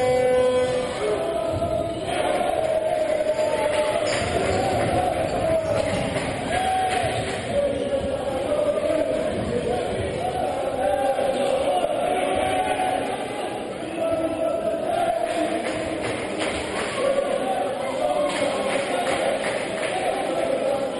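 A large crowd chants and sings loudly in an echoing hall.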